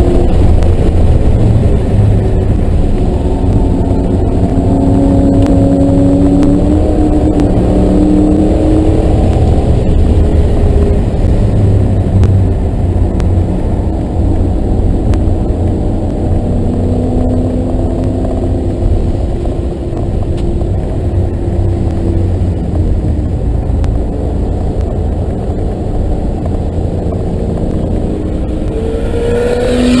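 A car engine roars loudly from inside the car, its pitch rising and falling.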